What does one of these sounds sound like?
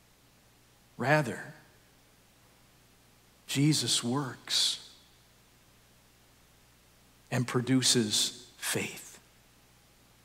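A man speaks slowly and calmly through a microphone in an echoing hall, with long pauses.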